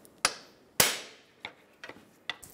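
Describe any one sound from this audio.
A pry bar knocks and clanks against metal.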